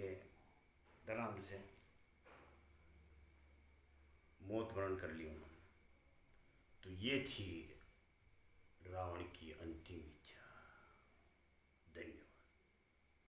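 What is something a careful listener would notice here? An elderly man speaks calmly and expressively into a nearby microphone, with pauses between phrases.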